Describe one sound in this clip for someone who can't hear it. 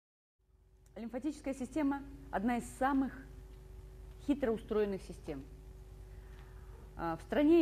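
A woman speaks into a microphone, lecturing calmly in a large hall.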